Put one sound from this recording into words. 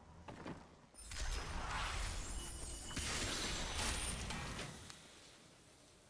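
Spells crackle and strike in a busy game battle.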